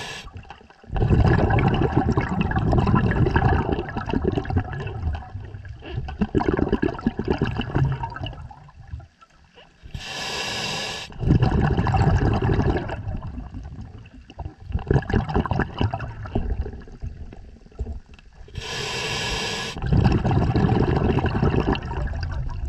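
Exhaled bubbles rumble and gurgle loudly close by.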